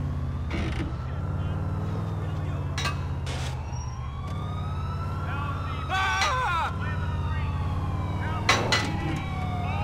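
A car smashes through metal fences with loud crashes.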